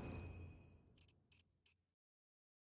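Soft menu clicks sound briefly.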